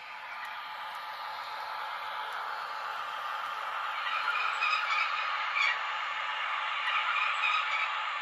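A model train rumbles and clatters along the track.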